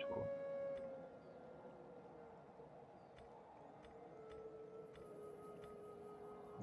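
Soft game interface clicks tick now and then.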